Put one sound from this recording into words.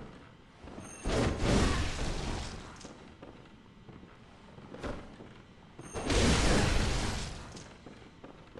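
A heavy blade slashes and strikes with loud, sudden impacts.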